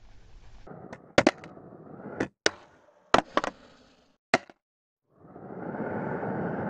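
Skateboard wheels roll over concrete with a steady rumble.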